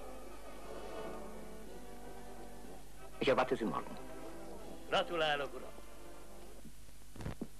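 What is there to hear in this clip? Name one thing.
A man speaks with animation in a group of men, close by.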